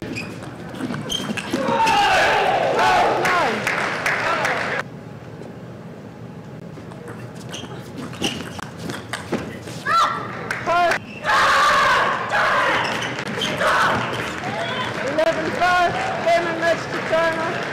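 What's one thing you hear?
Young women players shout loudly in celebration.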